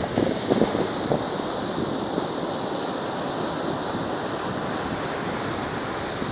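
Waves crash and roll onto the shore with a steady roar.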